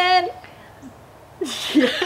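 A woman talks cheerfully close by.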